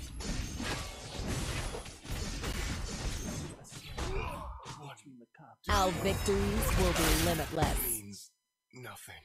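Fantasy battle sound effects clash and whoosh rapidly.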